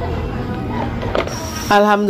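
A plastic bottle drops into a basket with a soft thud.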